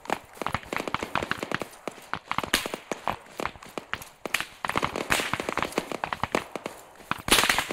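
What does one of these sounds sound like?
Footsteps crunch over dry ground and grass.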